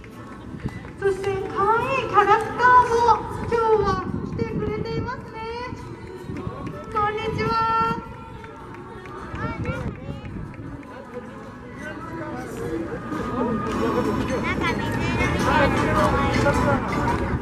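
A crowd of people talks and calls out outdoors.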